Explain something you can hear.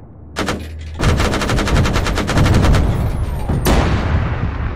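A heavy cannon fires a rapid burst of shots.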